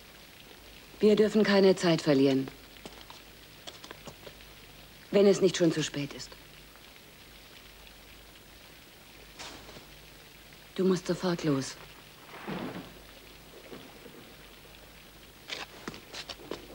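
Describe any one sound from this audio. A woman speaks softly, close by.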